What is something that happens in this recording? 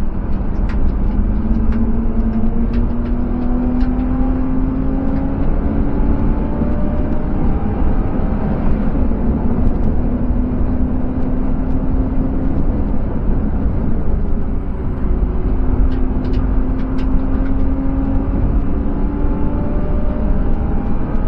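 Tyres and wind rumble loudly against the car.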